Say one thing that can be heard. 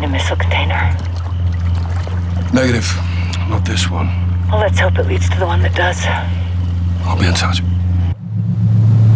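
Men talk calmly in low voices.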